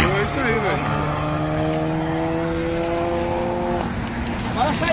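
A car engine roars loudly as it speeds past.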